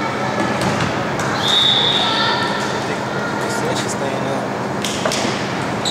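A volleyball is struck with thuds in an echoing gym.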